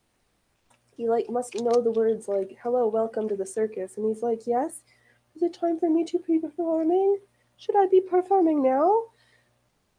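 A young woman speaks calmly and close to the microphone.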